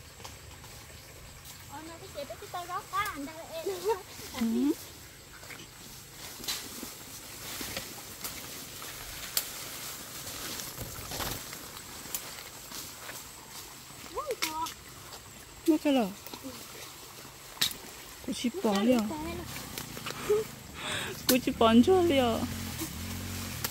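Bamboo leaves rustle and swish as someone pushes through them.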